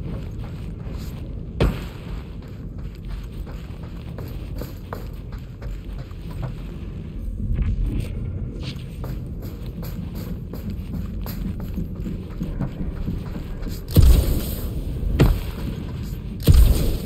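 Boots clang on a metal grating floor.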